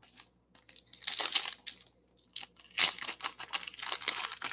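A foil card pack crinkles and tears open close by.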